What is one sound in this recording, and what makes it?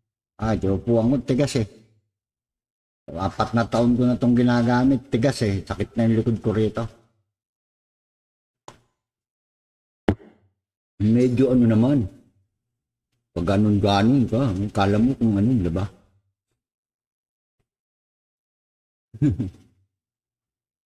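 A man talks nearby in short bursts with pauses.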